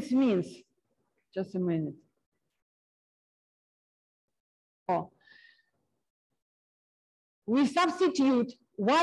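A man lectures calmly through a microphone, with pauses between phrases.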